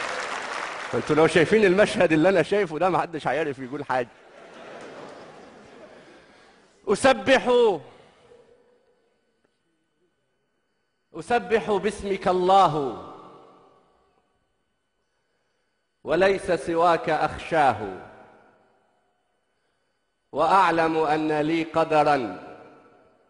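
A man recites with feeling into a microphone, in short bursts with pauses.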